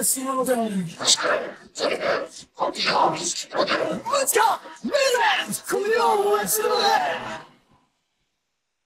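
A man sings in a strained, dramatic voice, close to the microphone.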